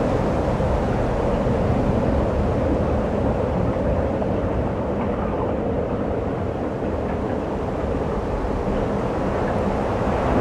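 Strong wind rushes and buffets outdoors over open water.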